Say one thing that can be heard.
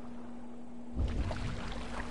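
A body plunges into water with a heavy splash.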